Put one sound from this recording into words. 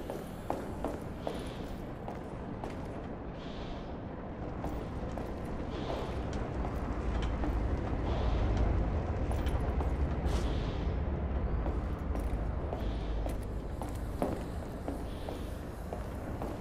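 Slow footsteps thud on a metal walkway.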